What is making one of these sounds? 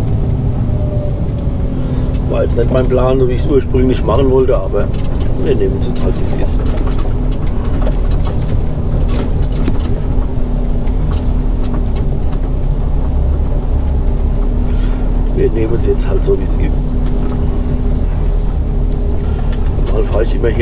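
A truck engine rumbles low and steady from inside the cab.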